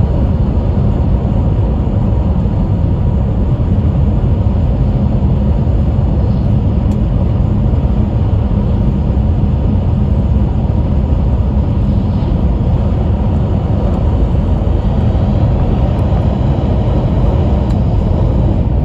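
A fast train hums and rumbles steadily.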